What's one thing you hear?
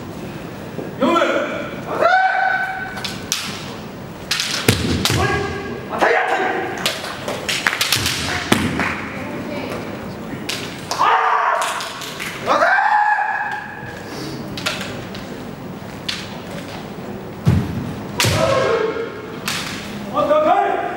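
Bamboo swords clack and strike sharply.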